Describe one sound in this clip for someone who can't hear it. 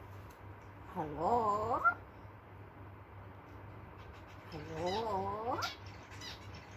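A parrot whistles close by in a rising, wavering tone, twice.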